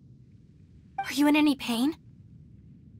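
A young woman asks a short question calmly.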